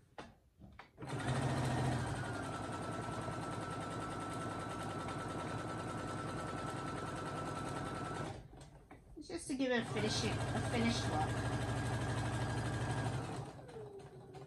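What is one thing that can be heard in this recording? A sewing machine whirs steadily as it stitches.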